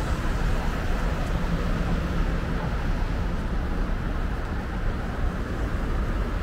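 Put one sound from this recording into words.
A taxi engine hums as it drives slowly past.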